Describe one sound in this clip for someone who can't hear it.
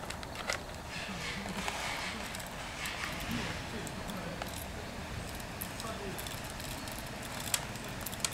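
Paper rustles as a small bag is handled.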